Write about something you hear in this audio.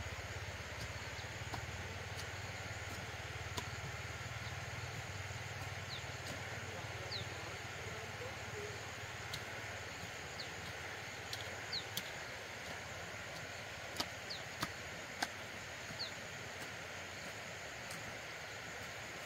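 A hoe scrapes and chops into dry soil.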